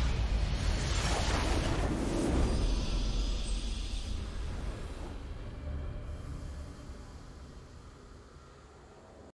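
A triumphant game fanfare swells with a burst of shimmering sound, then slowly fades away.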